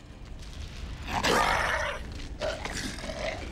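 A monster snarls loudly.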